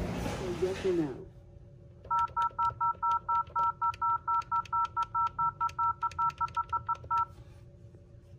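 Buttons click on a desk phone keypad.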